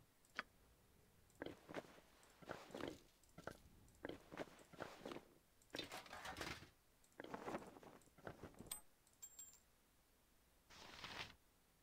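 Short metallic clinks sound as items are equipped in a game.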